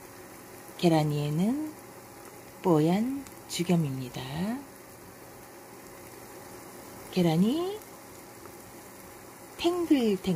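Eggs sizzle softly in hot oil.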